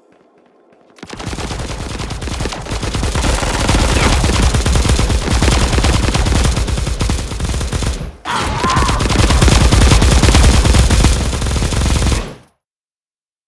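Guns fire in rapid, rattling bursts.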